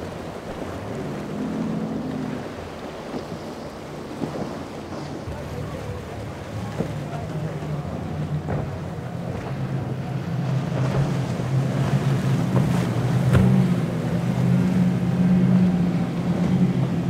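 Boat engines roar as boats speed past.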